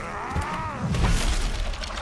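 Glass shatters as a window breaks.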